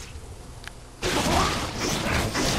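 Weapons clash and spells burst in a noisy fight.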